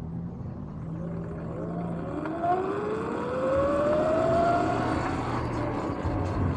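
An electric motor whines, rising in pitch as it speeds up.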